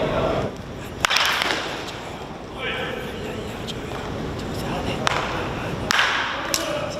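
A wooden baseball bat cracks against a baseball.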